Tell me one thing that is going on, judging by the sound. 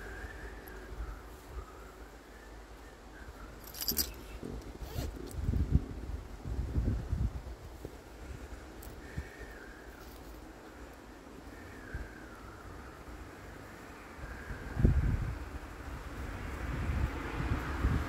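A man folds and crinkles stiff paper close by.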